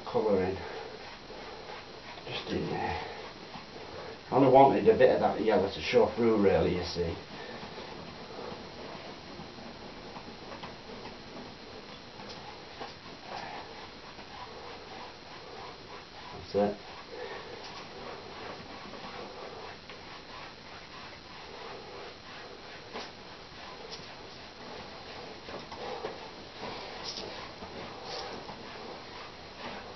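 Chalk pastel scrapes softly across a canvas.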